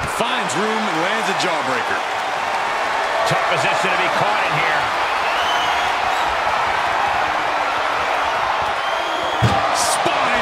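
A large crowd cheers and roars steadily.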